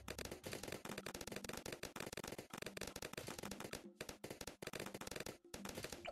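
Balloons pop rapidly, one after another.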